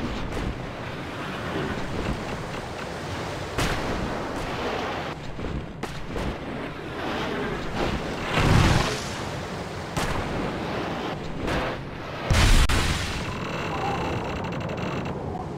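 A snowboard carves and hisses over snow.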